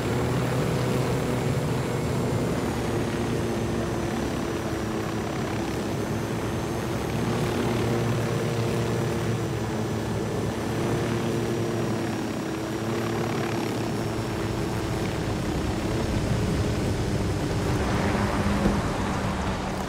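A helicopter's rotor thumps and its engine whines steadily overhead.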